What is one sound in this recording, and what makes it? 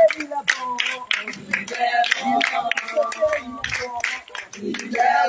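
A group of women sing together.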